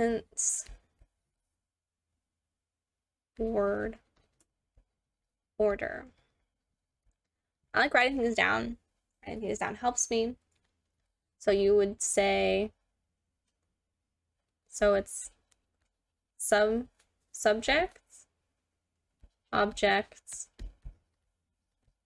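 A woman speaks calmly into a close microphone, in short phrases with pauses.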